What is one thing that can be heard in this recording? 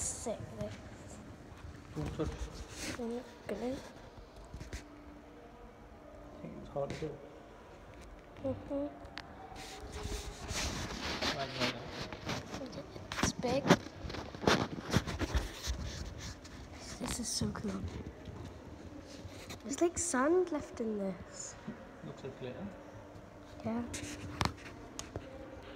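A young girl talks close by, softly and with animation.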